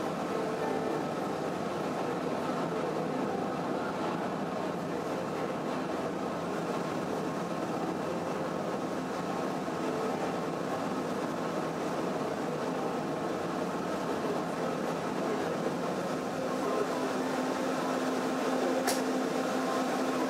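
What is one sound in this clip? Water washes against a ship's hull.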